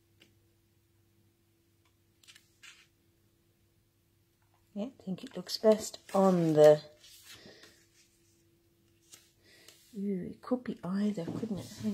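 Card paper rustles and taps softly as hands press and handle it.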